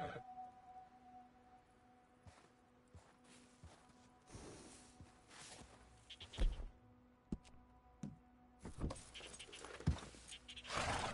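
Horse hooves crunch steadily through deep snow.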